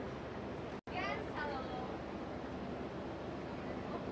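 A young woman calls out excitedly.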